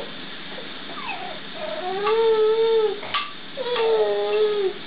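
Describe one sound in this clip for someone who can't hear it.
A baby coos and squeals loudly up close.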